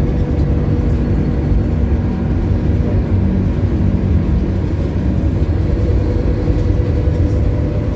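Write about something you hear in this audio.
A bus body rattles and vibrates.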